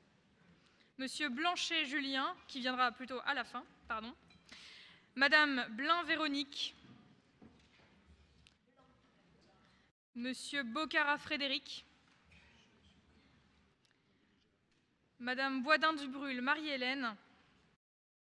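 A man speaks through a microphone, reading out in short phrases in a large echoing hall.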